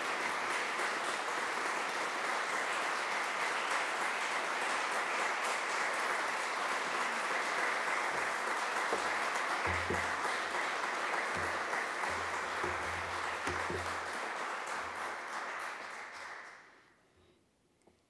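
An audience applauds steadily in a large hall, and the applause dies away.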